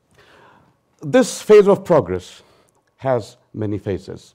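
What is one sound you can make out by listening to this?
An older man speaks through a microphone, in short bursts with pauses.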